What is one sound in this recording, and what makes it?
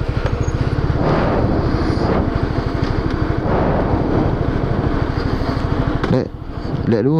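A motorbike engine idles with a steady rattling hum.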